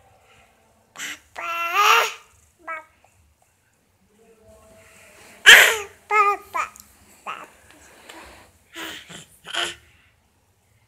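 A toddler babbles and squeals loudly close by.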